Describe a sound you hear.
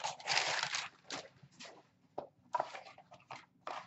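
A cardboard box scrapes and taps as it is opened.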